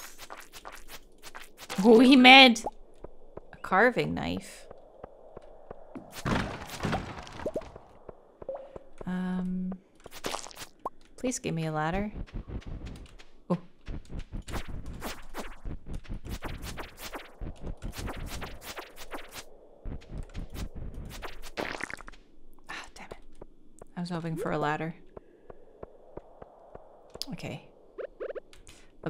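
A young woman talks calmly close to a microphone.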